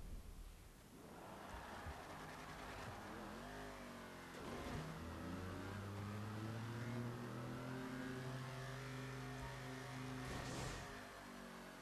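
Car engines roar and rev as they accelerate.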